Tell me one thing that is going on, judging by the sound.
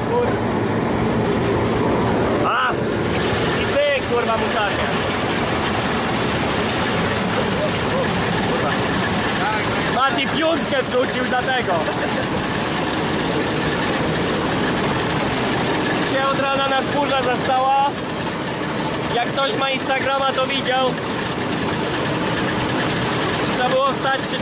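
A combine harvester engine roars steadily up close.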